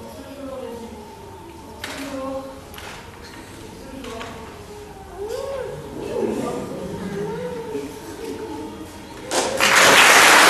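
A young woman speaks with feeling, heard from a distance.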